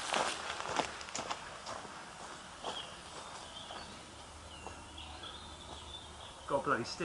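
Footsteps crunch on a leafy dirt path.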